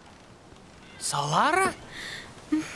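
A young woman cries out in fright.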